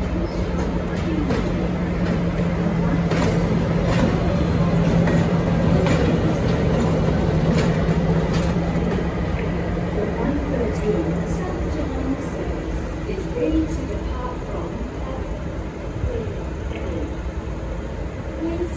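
Steel wheels clack and squeal on the rails.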